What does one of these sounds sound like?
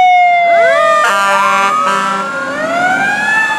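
A fire engine air horn blasts in short bursts.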